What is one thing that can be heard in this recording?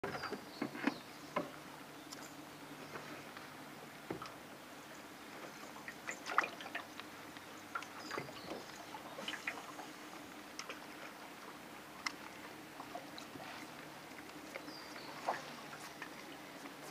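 Light raindrops patter on the water now and then.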